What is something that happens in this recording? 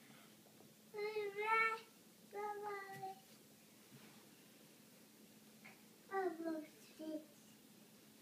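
A baby girl babbles and squeals loudly nearby.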